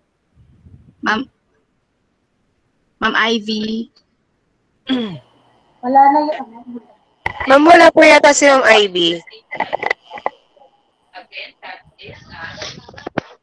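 Young women talk cheerfully over an online call.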